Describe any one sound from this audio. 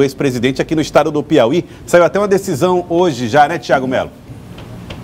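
A man speaks clearly through a microphone, like a news presenter.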